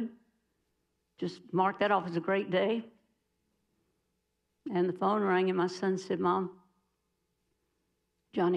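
An elderly woman speaks calmly into a microphone, in pauses.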